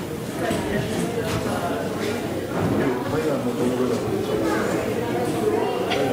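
A congregation sings together in a large room.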